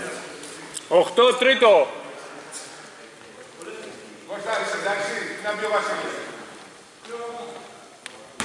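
Men shout in a large echoing gym.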